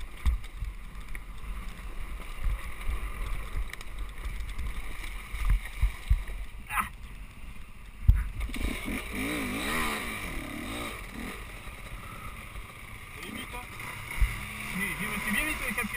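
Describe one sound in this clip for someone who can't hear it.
A dirt bike engine rumbles low and unevenly close by.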